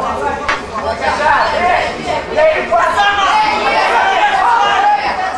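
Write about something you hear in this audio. A crowd cheers and shouts loudly in a large echoing hall.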